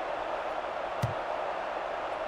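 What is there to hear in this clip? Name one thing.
A football is kicked with a single thump.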